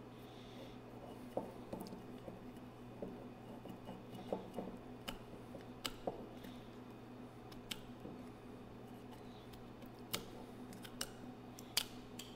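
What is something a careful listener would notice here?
A foil capsule crinkles and tears as a knife cuts around a bottle neck.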